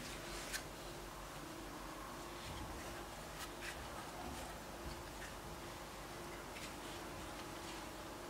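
A plate clinks softly as it is handled.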